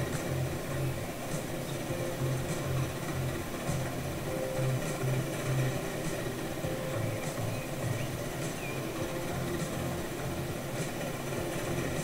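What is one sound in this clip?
A steam locomotive chugs steadily with rhythmic puffs.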